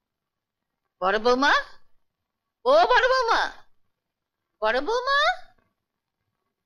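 An older woman calls out anxiously in short bursts, close by.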